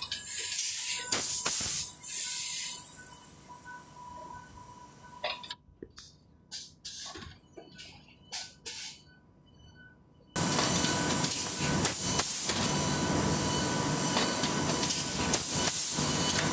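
A packaging machine whirs and clatters steadily.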